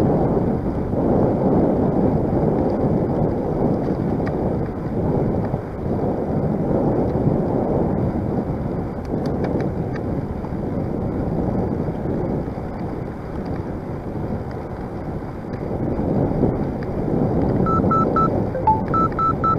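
Wind rushes loudly past a moving bicycle, rumbling and gusting throughout.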